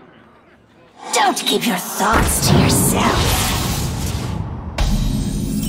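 A game plays a swirling magical whoosh as a card is played.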